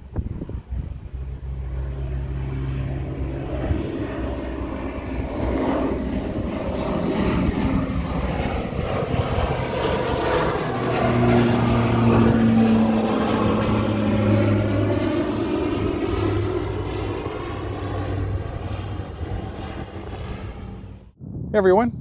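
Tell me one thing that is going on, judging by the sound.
A propeller plane takes off and roars overhead, its engine droning loudly and then slowly fading.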